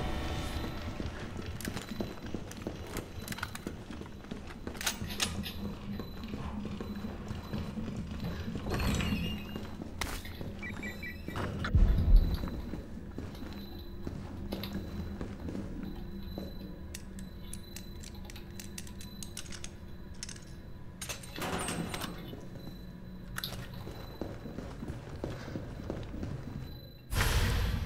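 Heavy boots thud on a hard floor.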